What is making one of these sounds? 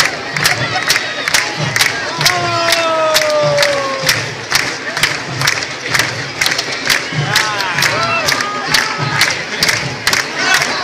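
A crowd cheers and chants at a distance.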